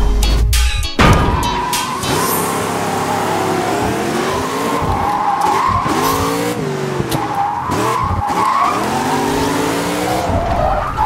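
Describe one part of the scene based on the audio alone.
A racing car engine revs up and down loudly.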